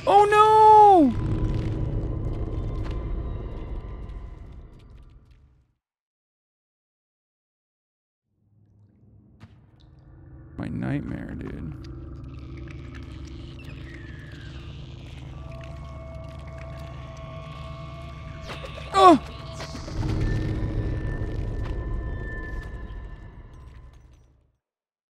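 A man talks quietly into a microphone.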